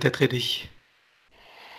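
A man speaks calmly through a headset microphone on an online call.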